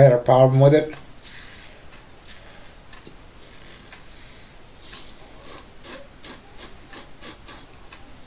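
A razor scrapes over stubble in short strokes.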